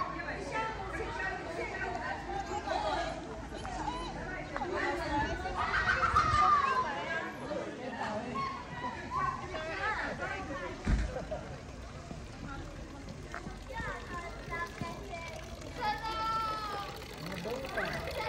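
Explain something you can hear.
Men and women chat at a distance outdoors.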